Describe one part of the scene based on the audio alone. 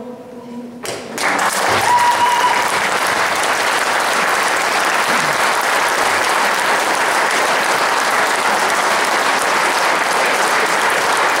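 An audience claps loudly and steadily.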